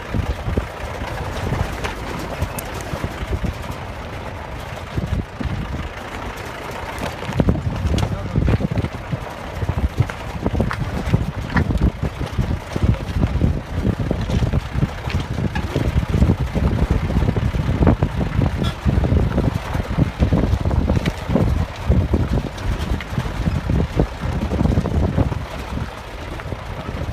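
A car's tyres crunch and rumble over loose stones.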